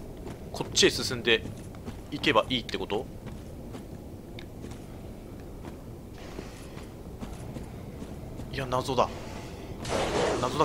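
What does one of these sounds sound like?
Armoured footsteps run quickly over dirt and stone.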